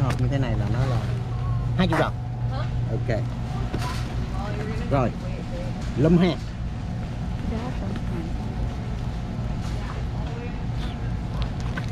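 Hands lift and shift a cardboard box, which scrapes and thumps.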